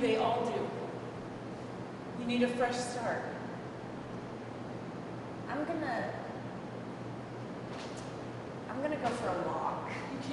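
A young woman speaks in an intense, emotional voice close by.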